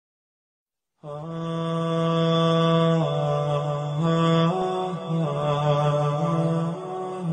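A man chants slowly through loudspeakers in a large echoing hall.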